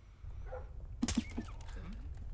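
A silenced gun fires a single muffled shot.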